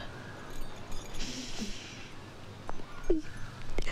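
A young woman sobs quietly.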